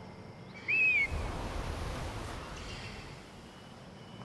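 Wind rushes loudly past a diving bird, then fades.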